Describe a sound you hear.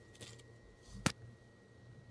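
A ceramic dish clicks against a hard surface.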